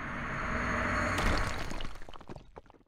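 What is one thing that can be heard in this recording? A stone figure bursts apart with a loud crash.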